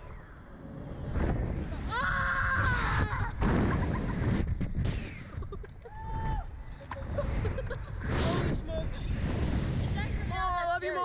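Wind rushes and buffets loudly past.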